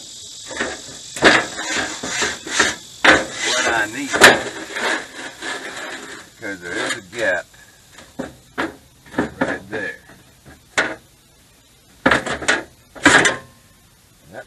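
Metal parts clank and knock nearby.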